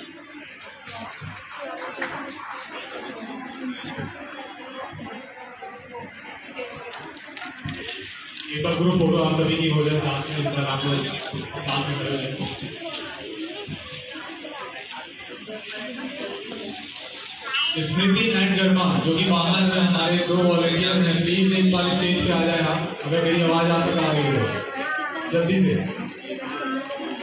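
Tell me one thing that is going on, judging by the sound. A seated crowd murmurs and chatters.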